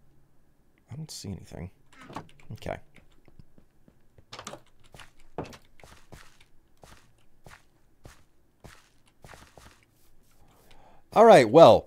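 Footsteps tap steadily on stone and grass.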